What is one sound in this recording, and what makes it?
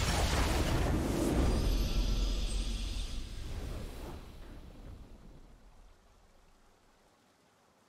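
A triumphant game fanfare swells and fades out.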